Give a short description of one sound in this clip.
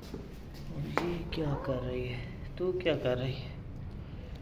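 A kitten mews close by.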